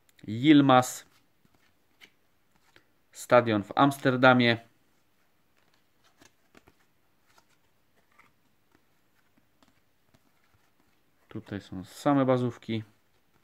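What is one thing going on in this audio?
Trading cards rustle softly as they are shuffled by hand.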